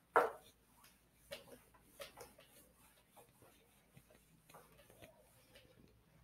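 An eraser rubs and squeaks across a whiteboard.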